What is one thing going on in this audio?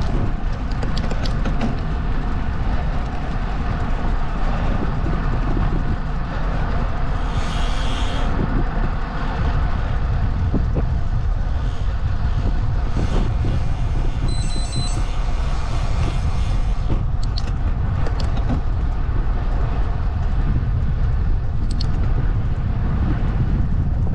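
Tyres roll steadily over asphalt.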